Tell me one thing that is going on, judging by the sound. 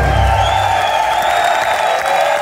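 A live band's last chord rings out and stops.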